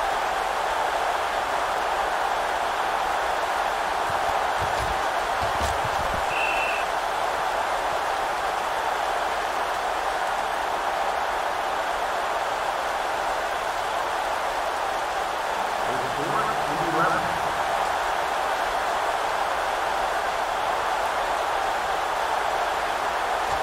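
A stadium crowd murmurs steadily in the distance.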